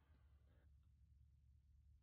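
A whale blows a spout of air in the distance.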